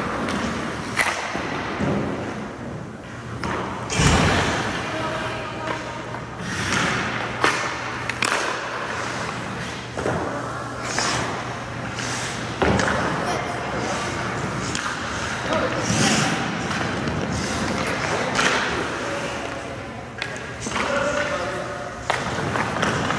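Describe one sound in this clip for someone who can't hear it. Hockey sticks slap pucks, with sharp cracks echoing around an indoor rink.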